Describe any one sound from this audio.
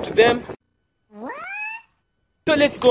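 A cartoon character shouts in a high squeaky voice.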